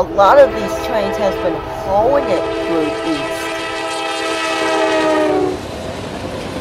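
A diesel locomotive engine rumbles as it passes close by.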